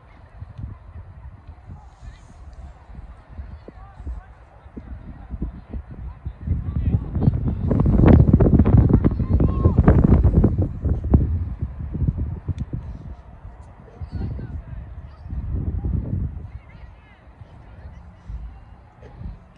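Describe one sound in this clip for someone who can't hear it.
Wind rumbles across an open field outdoors.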